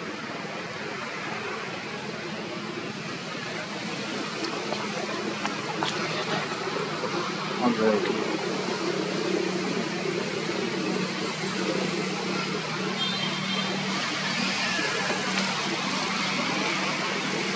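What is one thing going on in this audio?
Leaves rustle as monkeys shift on branches in a tree.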